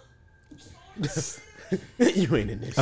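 A man laughs loudly.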